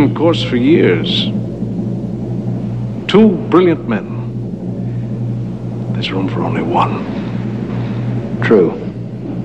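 A man speaks in a smooth, sly voice close by.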